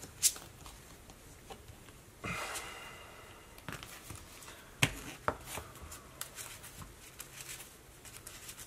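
Cards tap and slide on a table mat.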